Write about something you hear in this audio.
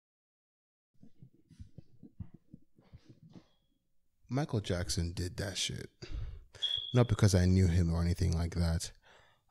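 A man speaks into a microphone close by, reading out with animation in a bare echoing room.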